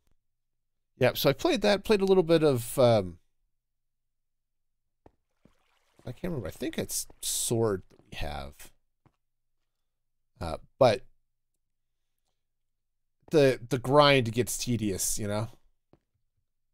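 A middle-aged man talks with animation close to a microphone, in short bursts.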